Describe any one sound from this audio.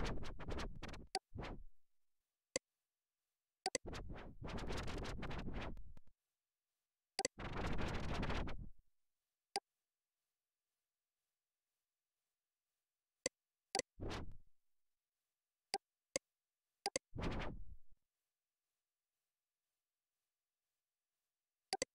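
Short computer clicks sound now and then.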